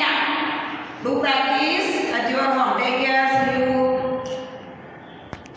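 A woman speaks clearly and calmly, close by.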